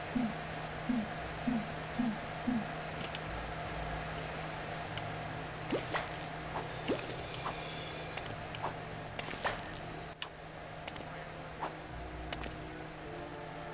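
Small tapping footsteps patter quickly.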